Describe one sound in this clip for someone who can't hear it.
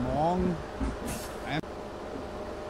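Bus doors close with a sharp hiss of air.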